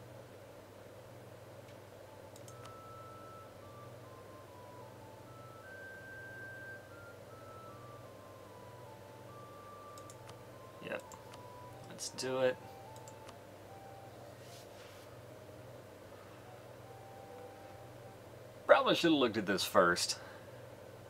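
Soft game music plays a slow melody.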